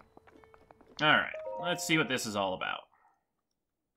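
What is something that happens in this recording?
A shimmering magical chime swells and then cuts off.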